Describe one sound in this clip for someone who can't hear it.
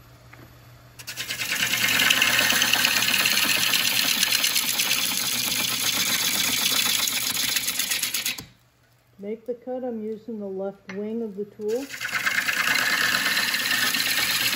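A gouge cuts into spinning wood on a lathe with a loud, rough scraping hiss.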